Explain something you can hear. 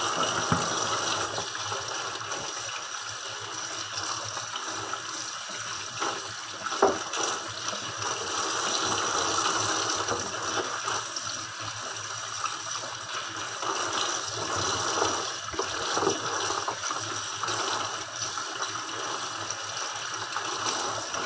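Water runs steadily from a tap into a metal sink.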